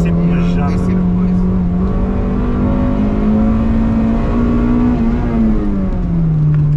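A car engine drones loudly from inside the cabin, its pitch rising and falling as it revs.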